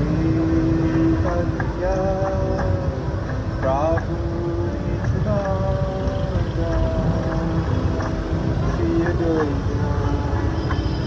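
A motorbike engine rumbles and revs up and down close by.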